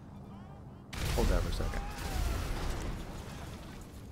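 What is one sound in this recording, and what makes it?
An explosion booms with a loud roar.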